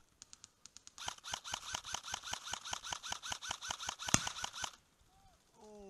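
A paintball marker fires a rapid burst of shots up close.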